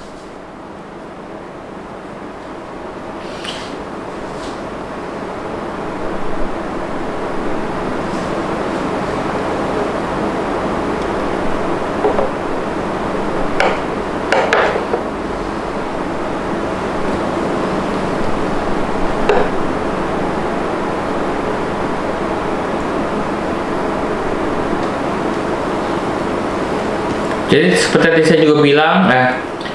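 Food sizzles steadily in a hot pan, growing louder.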